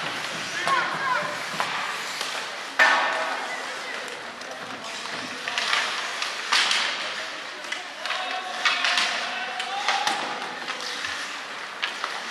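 Skates scrape and carve on ice.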